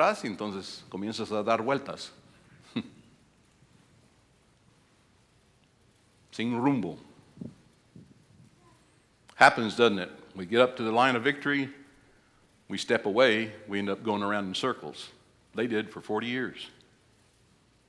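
An older man speaks with animation through a microphone, pausing between phrases.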